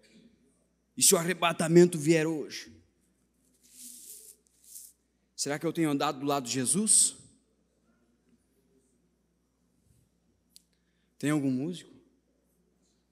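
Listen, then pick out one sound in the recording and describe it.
A man speaks with emphasis into a microphone in short bursts, with pauses between.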